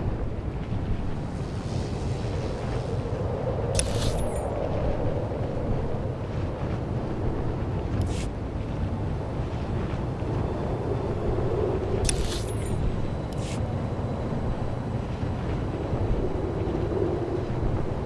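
A hovering engine hums steadily with a low drone.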